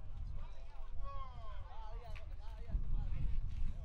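An adult man talks in conversation outdoors.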